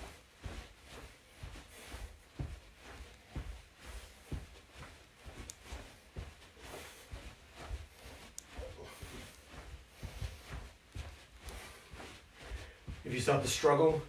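Feet thud softly and quickly on a carpeted floor.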